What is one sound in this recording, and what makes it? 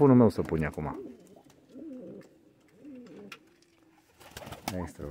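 A pigeon coos softly nearby.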